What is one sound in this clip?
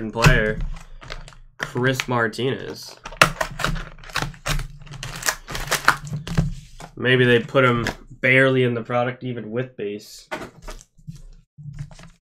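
Plastic wrapping crinkles as hands tear it open.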